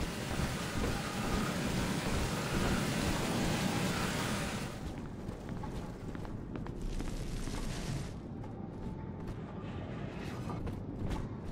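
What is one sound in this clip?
Flames crackle softly and steadily.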